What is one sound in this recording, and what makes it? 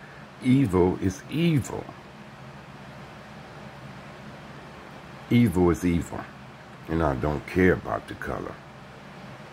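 An elderly man speaks slowly and softly, close to the microphone.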